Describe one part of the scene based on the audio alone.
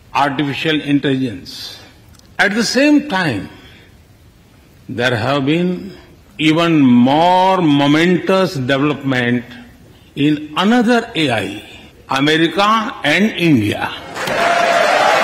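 A man speaks into a microphone in a large echoing hall, with pauses.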